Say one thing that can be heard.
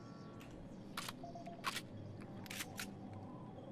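A gun is reloaded with a few sharp metallic clicks.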